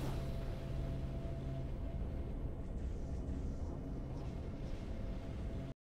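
A triumphant game fanfare plays with a low booming swell.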